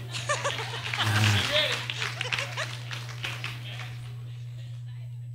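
An elderly man laughs into a microphone.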